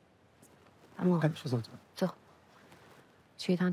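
A young woman speaks quietly.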